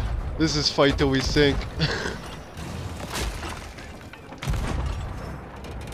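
A cannon fires with a deep boom.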